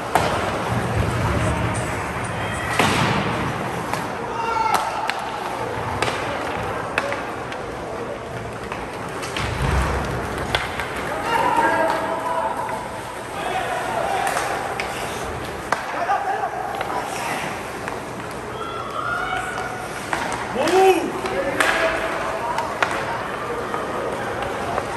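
The arena sounds large and echoing.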